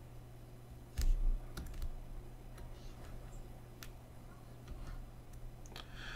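A pen taps and scratches lightly on a tablet.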